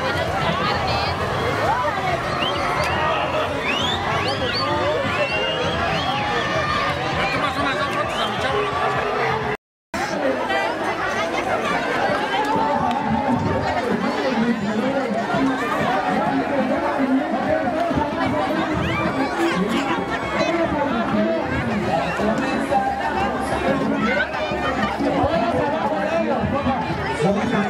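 A large outdoor crowd chatters and shouts loudly all around.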